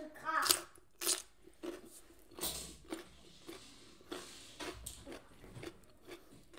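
A woman chews food with wet crunching sounds.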